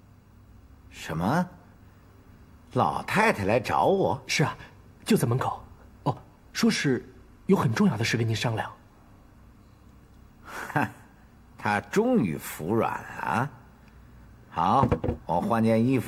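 An elderly man speaks in a questioning tone, close by.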